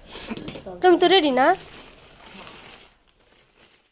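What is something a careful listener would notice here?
A plastic sack rustles as it is handled.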